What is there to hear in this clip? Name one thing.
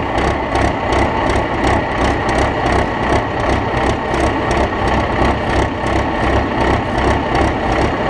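A tractor engine roars loudly and steadily up close.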